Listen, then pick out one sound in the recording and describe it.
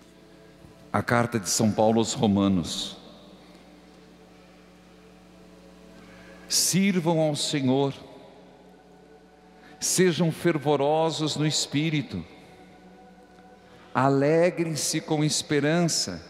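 A man speaks calmly through a microphone in a large echoing hall, with pauses between phrases.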